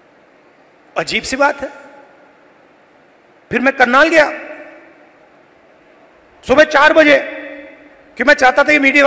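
A man speaks emphatically through a microphone and loudspeakers in short phrases with long pauses, echoing in a large open space.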